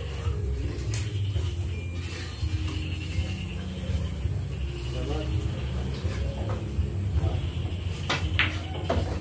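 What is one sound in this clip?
Billiard balls click sharply together as a cue strikes.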